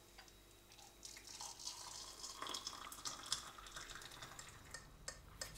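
Water pours into a mug.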